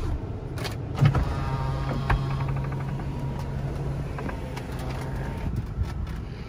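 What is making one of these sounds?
An electric motor whirs as a convertible soft top folds open.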